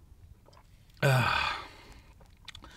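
A man exhales loudly with satisfaction.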